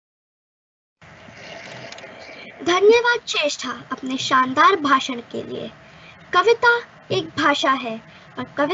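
A teenage girl speaks with animation over an online call.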